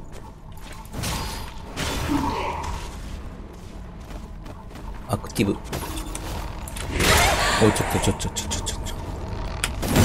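Metal blades slash and strike flesh with sharp impacts.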